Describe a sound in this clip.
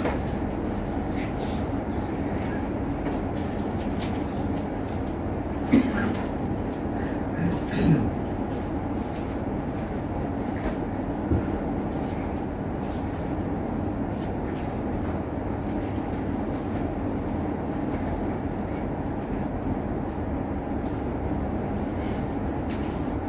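An elderly man murmurs prayers quietly.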